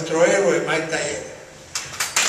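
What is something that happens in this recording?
An elderly man speaks through a microphone and loudspeaker.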